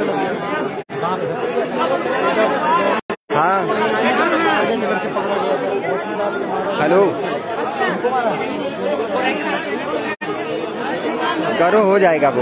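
A crowd of people talks and murmurs outdoors.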